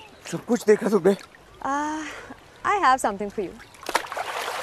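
A young woman laughs and speaks playfully.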